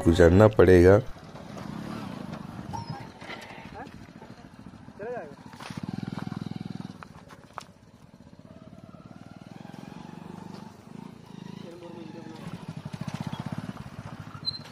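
A motorcycle engine putters and revs nearby.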